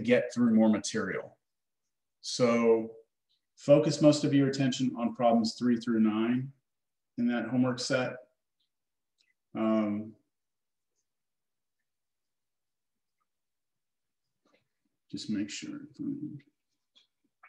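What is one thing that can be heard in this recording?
A man speaks calmly and closely through a microphone, with pauses.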